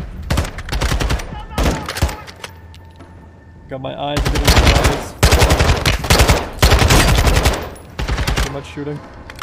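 A rifle fires in rapid, loud bursts close by.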